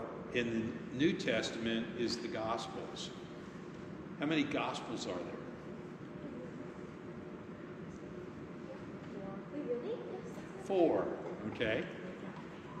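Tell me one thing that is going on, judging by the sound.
A middle-aged man speaks calmly in a large echoing hall.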